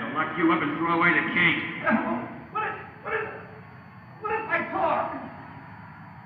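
A man speaks roughly and threateningly, close by.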